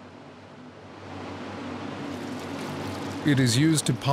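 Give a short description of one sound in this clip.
Liquid pours into a plastic bucket.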